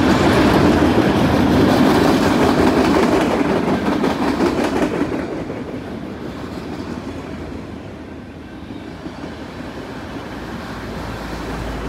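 A long freight train rumbles past close by, its wheels clattering on the rails.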